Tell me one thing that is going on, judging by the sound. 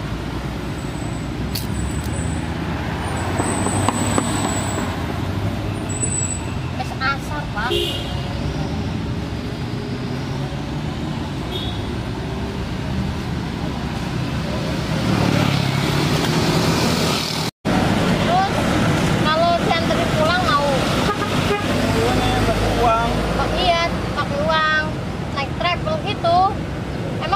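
Traffic hums steadily on a nearby road.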